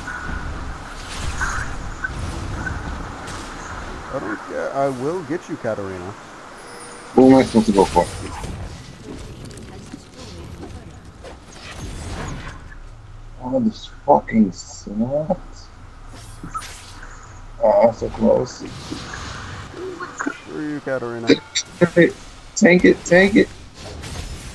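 Magic spells burst and crackle in quick bursts.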